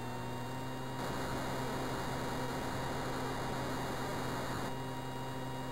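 A jet engine roars with a rushing hiss as it takes off.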